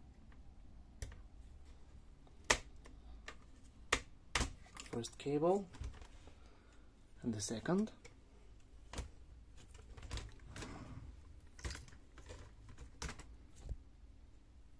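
Plastic parts click and snap as a panel is pried loose.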